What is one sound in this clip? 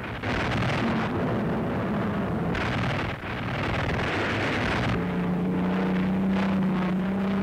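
Aircraft engines roar steadily.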